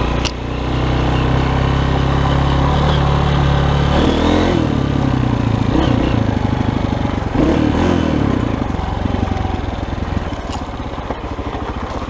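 A dirt bike engine revs and putters up close, rising and falling.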